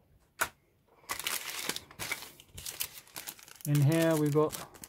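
A plastic bag crinkles and rustles close by.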